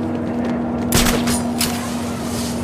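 A grappling hook fires with a sharp whoosh.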